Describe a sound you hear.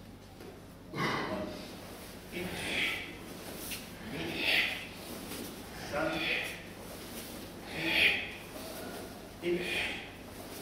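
Wooden practice swords swish through the air in unison, again and again, in a large echoing hall.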